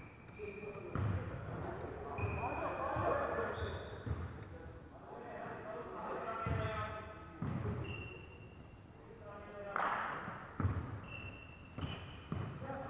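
A basketball bounces on a wooden court in a large echoing hall.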